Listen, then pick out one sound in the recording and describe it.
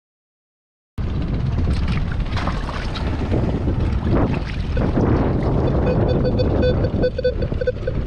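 Water sloshes and splashes as someone wades through shallow water.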